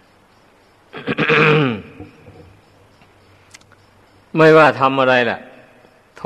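An elderly man speaks calmly into a microphone, in short phrases.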